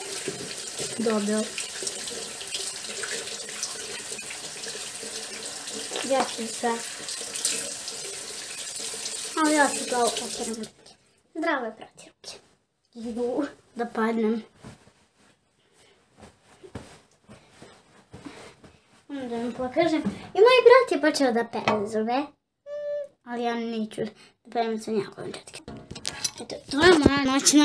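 A young girl talks close by, with animation.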